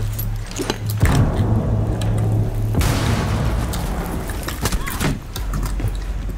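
A loud blast booms and rumbles.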